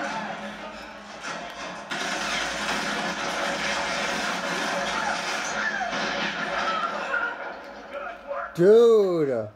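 A television plays loud, noisy game sounds.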